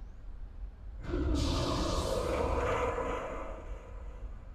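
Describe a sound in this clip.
A creature lets out a loud, harsh roar.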